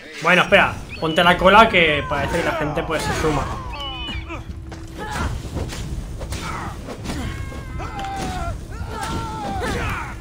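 Blades strike and clash in quick blows.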